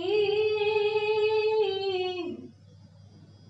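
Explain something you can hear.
Young women sing together, holding a long note that falls away.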